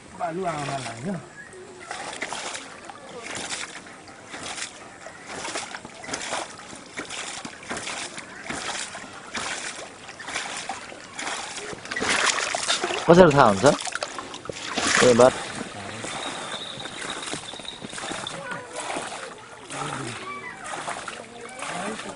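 A hand pump squeaks and clanks with steady strokes.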